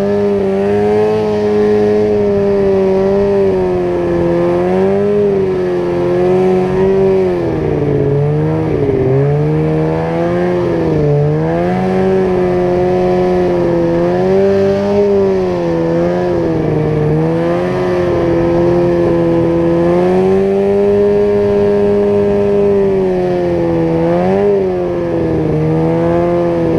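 A snowmobile engine drones loudly and close by, its pitch rising and dipping as the throttle changes.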